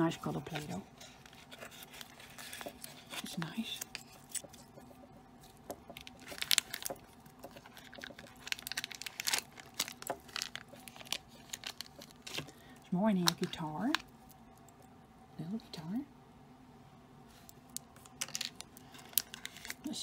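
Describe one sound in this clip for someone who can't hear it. Plastic crinkles and clicks as hands handle a small container.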